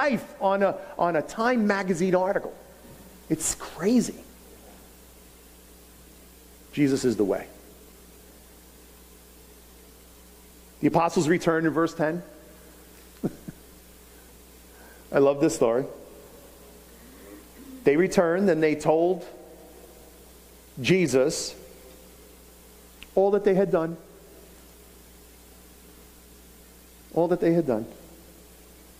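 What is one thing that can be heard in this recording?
A middle-aged man speaks slowly with pauses through a microphone in a large room.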